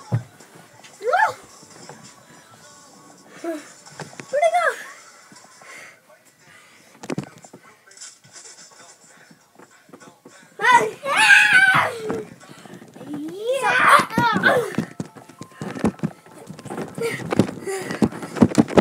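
A young boy talks and laughs nearby with animation.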